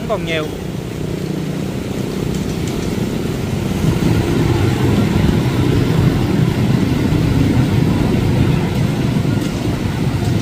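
Water splashes and sloshes around wheels moving through a flooded street.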